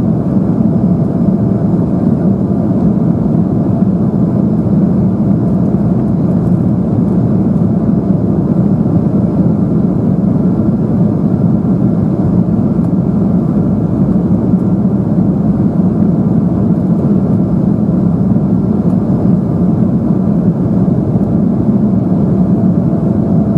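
A jet airliner's engines roar steadily in flight, heard from inside the cabin.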